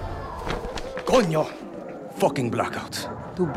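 A man exclaims in surprise and curses.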